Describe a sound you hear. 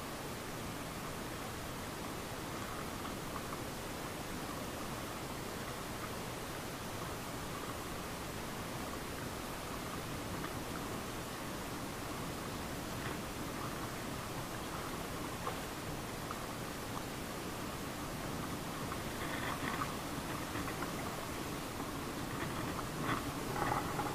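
Water laps gently against rocks outdoors.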